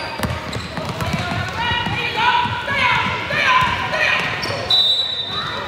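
Young girls shout and call out to each other.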